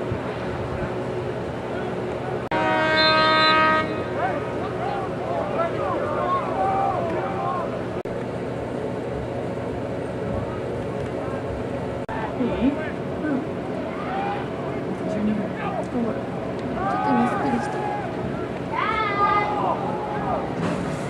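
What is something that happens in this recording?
Young men shout and call out to each other at a distance outdoors.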